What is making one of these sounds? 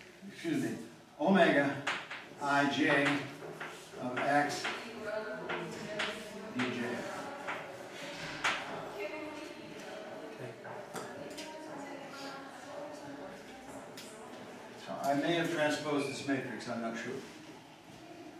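An elderly man lectures calmly in an echoing room.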